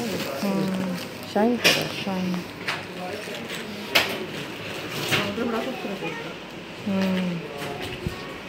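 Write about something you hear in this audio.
Cloth rustles and crinkles as hands handle it close by.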